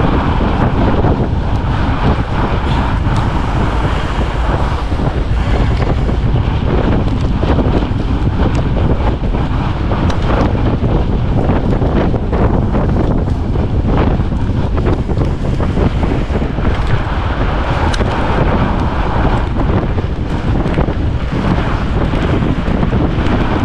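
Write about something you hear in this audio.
Fat bike tyres crunch over packed snow.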